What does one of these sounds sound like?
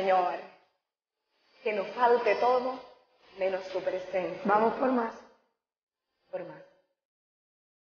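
A young woman sings close to a microphone, with pauses.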